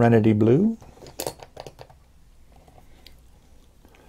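A glass ink bottle's cap is unscrewed.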